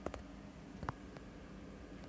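A finger taps a touchscreen.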